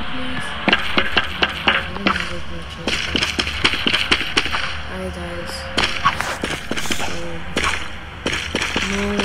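Footsteps tread on a hard surface.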